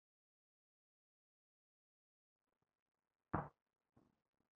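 An egg taps down lightly on a hard surface.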